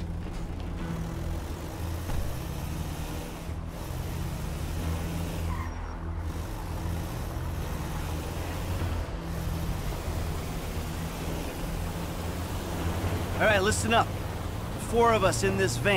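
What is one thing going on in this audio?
A van engine hums steadily as the van drives along.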